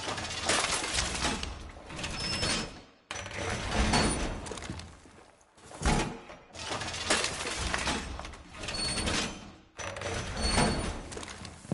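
Heavy metal panels clank and rattle into place.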